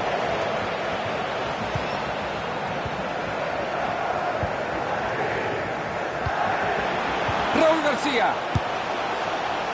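A stadium crowd roars and chants steadily.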